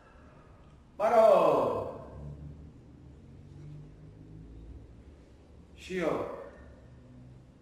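A young man shouts sharply, with a short echo.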